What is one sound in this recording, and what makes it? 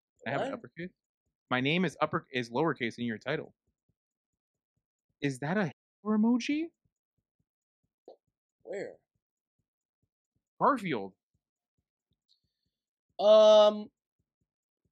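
A young man speaks close to a microphone with animation, in short bursts.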